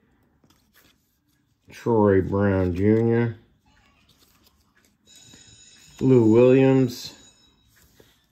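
Trading cards slide and rustle softly against each other.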